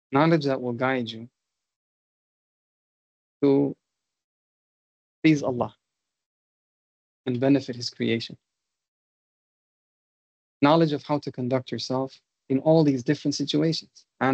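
A man speaks calmly in short phrases with pauses, heard through an online call.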